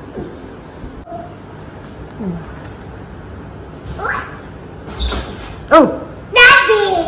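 A chair's plastic back creaks and knocks as a toddler pushes it.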